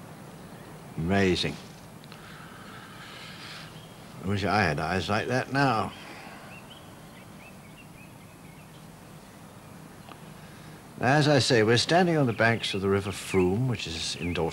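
An elderly man talks calmly nearby, outdoors.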